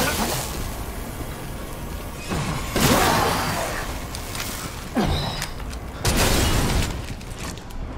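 Gunshots blast in loud bursts.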